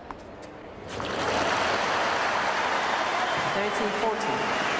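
A crowd applauds and cheers loudly.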